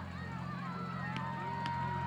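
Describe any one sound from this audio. A hockey stick strikes a ball with a sharp click.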